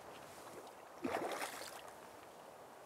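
A fishing line swishes through the air.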